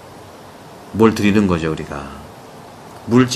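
A middle-aged man speaks calmly and close to a microphone.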